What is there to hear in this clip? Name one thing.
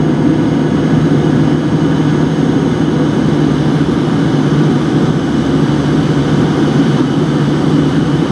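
A jet engine roars steadily close by, heard from inside an airliner cabin.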